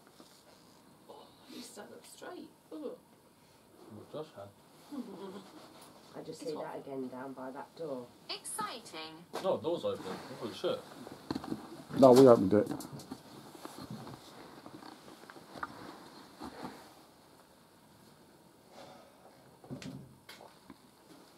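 Several young men and women talk quietly nearby.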